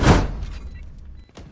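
A gunshot bangs loudly.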